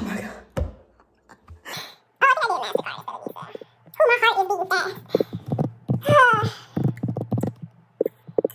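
A young woman speaks close to the microphone with animation.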